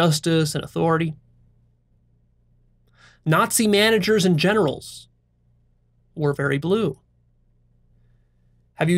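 A young man speaks calmly and close to a microphone, in short phrases with pauses.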